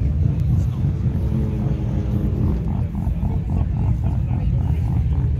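A car engine idles with a deep, rumbling exhaust burble.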